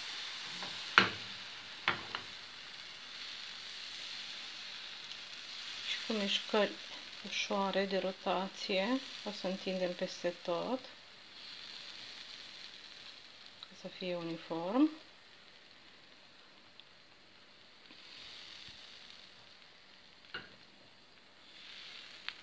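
Batter sizzles softly in a hot frying pan.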